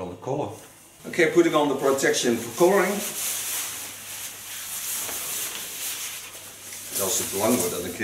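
A fabric cape rustles and flaps as it is shaken out.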